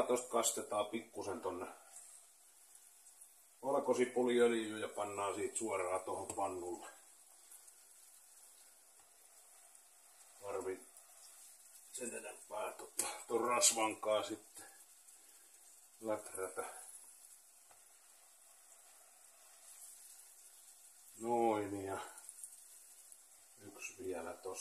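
A spoon stirs and scrapes in a metal pot.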